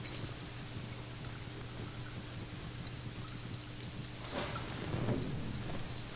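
A man speaks quietly in prayer through a microphone.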